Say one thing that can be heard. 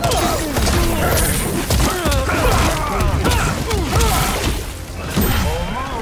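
Heavy punches and kicks land with sharp thuds.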